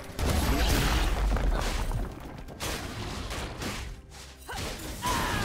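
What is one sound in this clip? Fantasy game combat effects clash and thump in bursts.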